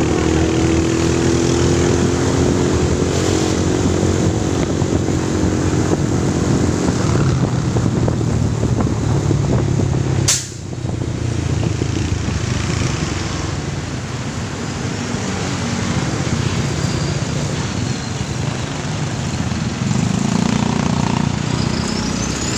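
Wind rushes past loudly, outdoors.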